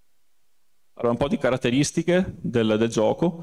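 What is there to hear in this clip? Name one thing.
A man speaks with animation close into a microphone.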